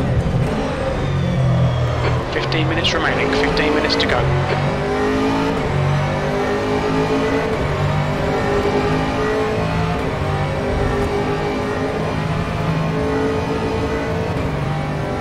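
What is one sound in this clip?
A racing car engine roars and revs up and down through its gears.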